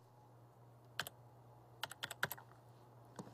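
Keys click on a computer keyboard as someone types.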